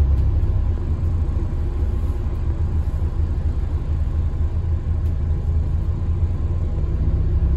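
A bus engine rumbles low and steady from inside the moving bus.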